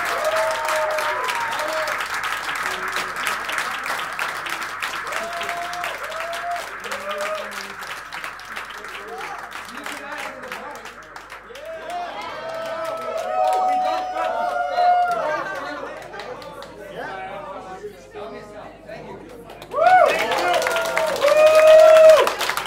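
A crowd claps along to the music.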